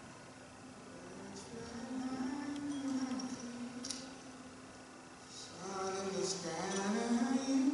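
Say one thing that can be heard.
An older man sings slowly with long, held notes.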